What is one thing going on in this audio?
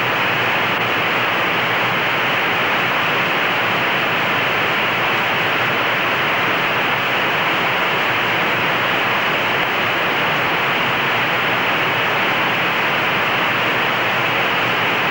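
A heavy aircraft rolls fast along a runway with a steady rushing roar.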